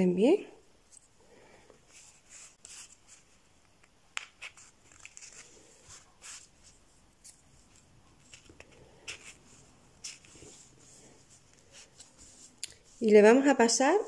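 Cotton fabric rustles as hands fold and handle it.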